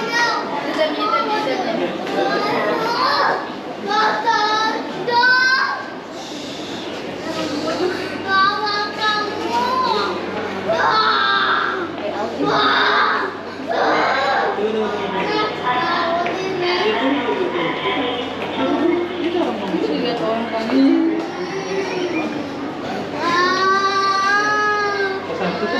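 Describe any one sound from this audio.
Voices of a crowd murmur and chatter in a large echoing hall.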